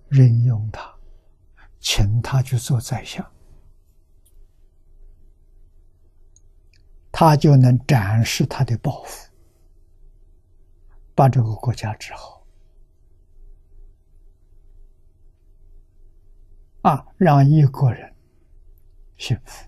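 An elderly man speaks calmly in short phrases with pauses, close to a microphone.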